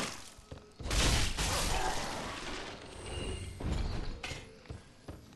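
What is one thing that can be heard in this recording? A sword clashes loudly against a shield.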